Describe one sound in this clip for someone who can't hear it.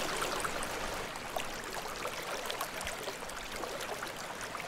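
Water ripples and trickles gently.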